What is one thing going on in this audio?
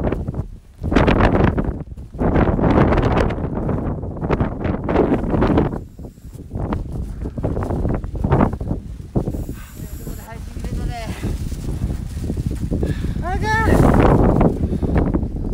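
Strong wind roars and buffets against a close microphone outdoors.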